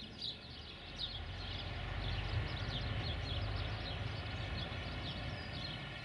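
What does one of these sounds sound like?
A diesel-electric locomotive rumbles in the distance.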